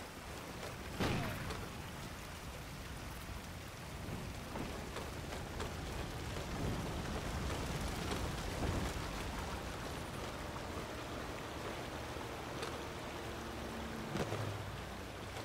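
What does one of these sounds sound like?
A rifle fires a sharp shot that echoes.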